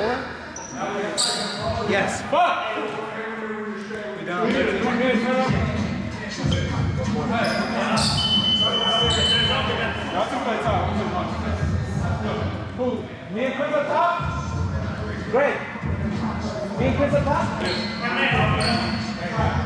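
A young man talks and laughs close by, in a large echoing gym.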